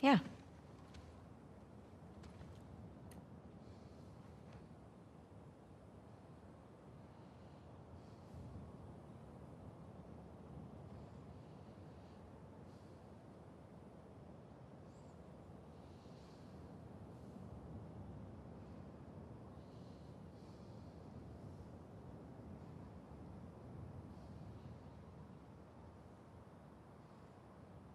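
An acoustic guitar is strummed and picked slowly.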